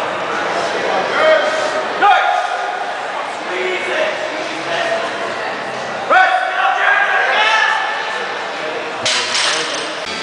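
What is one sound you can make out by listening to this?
Men shout encouragement loudly.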